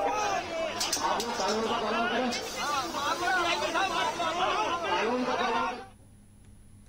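A crowd of men shouts and clamours loudly in a scuffle.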